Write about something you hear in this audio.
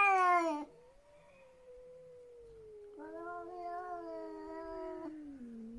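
Cats yowl in long, drawn-out wails close by.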